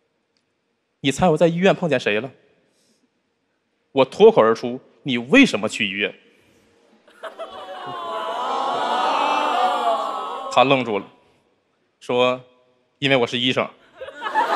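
A young man speaks into a microphone, his voice carrying through a hall's loudspeakers.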